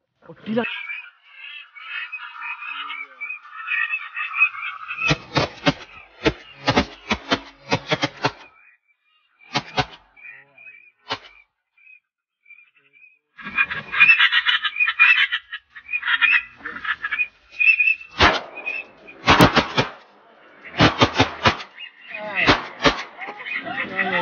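Ducks quack overhead and on the water.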